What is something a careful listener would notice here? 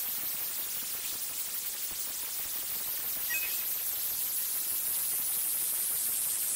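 Torch flames crackle and hiss steadily.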